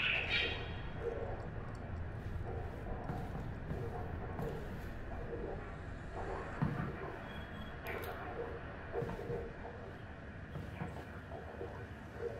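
Footsteps climb concrete stairs.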